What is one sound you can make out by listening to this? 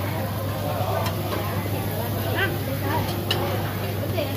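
Metal tongs clink against a grill.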